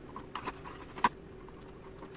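Fingers tap lightly on thin balsa wood.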